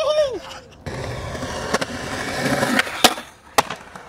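A skateboard grinds along a concrete ledge.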